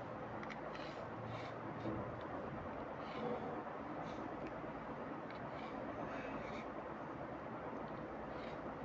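A pencil scratches across paper.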